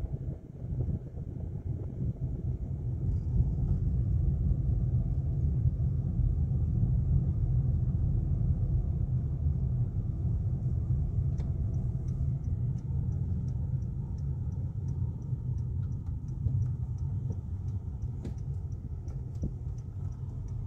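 A car's engine hums and tyres roar steadily on the road.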